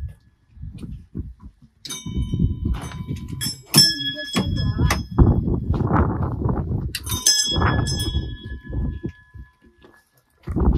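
A large prayer wheel rumbles as it turns.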